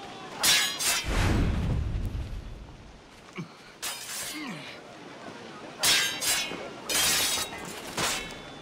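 Swords clash and ring sharply.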